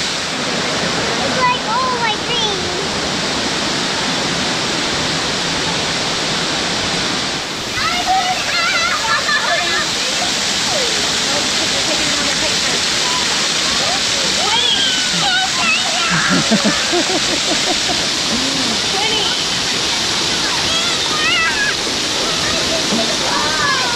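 A waterfall rushes and splashes steadily nearby.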